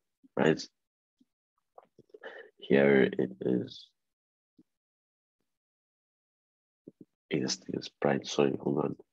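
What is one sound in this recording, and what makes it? A young man speaks through an online call, with pauses.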